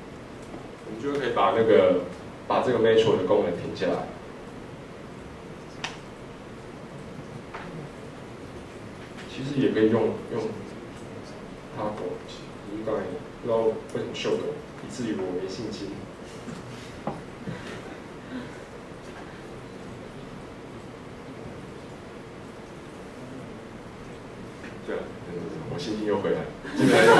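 A young man speaks calmly through a microphone in a room with a slight echo, pausing often.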